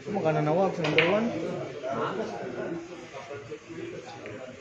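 Billiard balls clack together and roll across the table.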